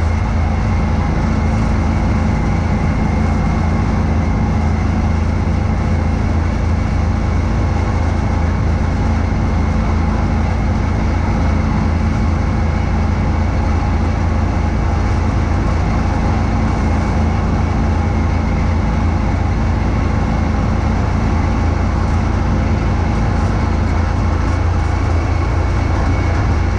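A snowblower engine roars steadily close by.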